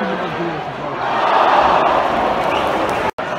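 A stadium crowd roars louder for a moment.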